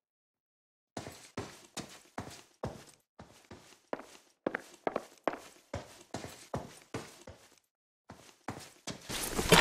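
Footsteps tap softly on a hard floor.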